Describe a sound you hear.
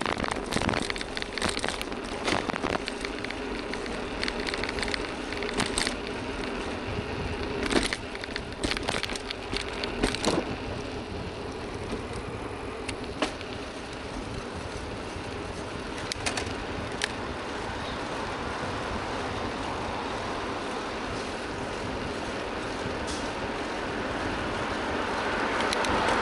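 Wind rushes past a moving bicycle outdoors.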